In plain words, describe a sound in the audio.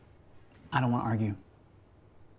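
A man speaks briefly and calmly, close by.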